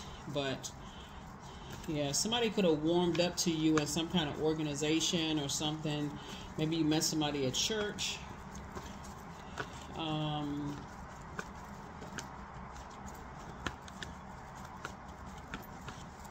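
Playing cards shuffle and riffle close by.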